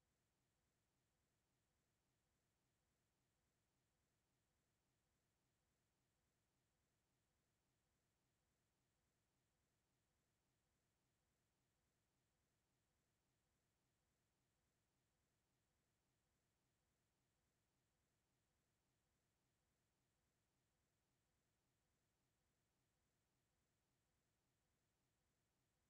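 A clock ticks softly.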